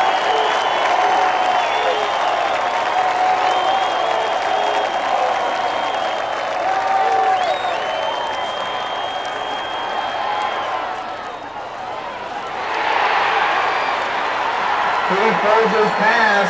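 A large outdoor crowd cheers and shouts from the stands.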